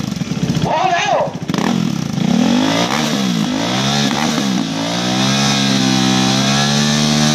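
A motorcycle engine revs hard and loud, close by, rising and falling in pitch.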